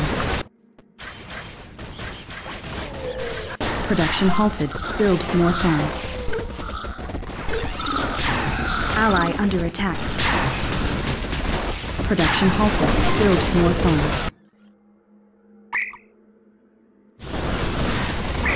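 Gunfire and blasts crackle in a game battle.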